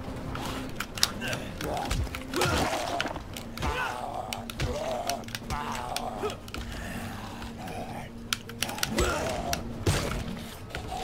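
Blows thud and crunch against a zombie's body.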